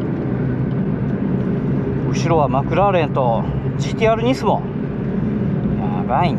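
Tyres hum on smooth pavement.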